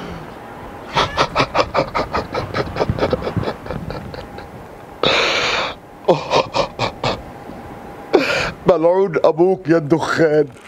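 An elderly man coughs hard and repeatedly.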